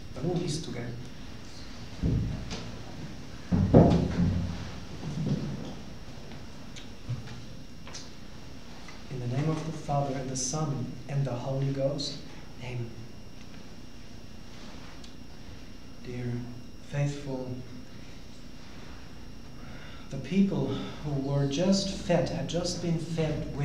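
A man reads aloud in a calm, measured voice, close by, in a room with a slight echo.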